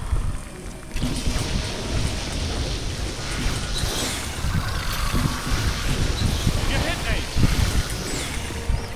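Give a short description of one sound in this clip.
An energy beam crackles and hums as it fires.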